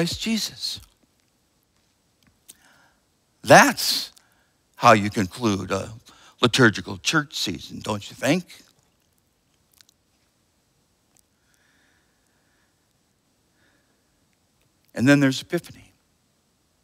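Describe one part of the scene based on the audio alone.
A middle-aged man speaks calmly and expressively into a microphone, with pauses between phrases.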